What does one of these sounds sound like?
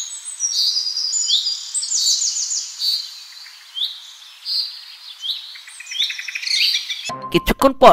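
Small birds chirp and trill in quick bursts.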